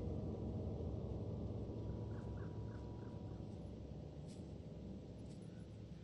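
Thunder rumbles low in the distance.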